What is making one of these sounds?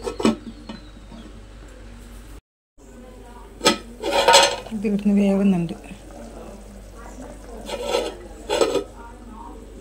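A metal lid clanks against a metal pot.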